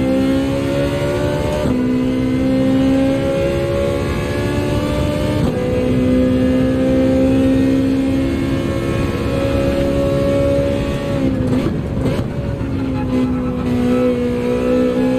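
A racing car engine revs hard and climbs through the gears.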